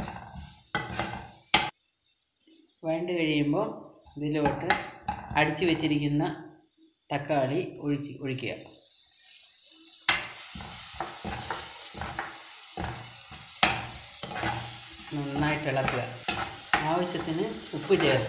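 A metal spoon scrapes and clinks against a frying pan.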